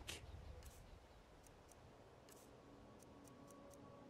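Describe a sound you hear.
Soft clicks tick in quick succession.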